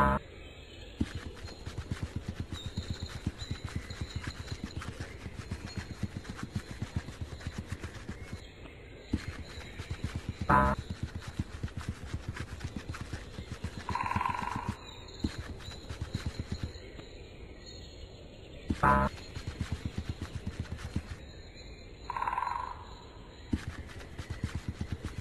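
Quick soft footsteps patter in a steady rhythm.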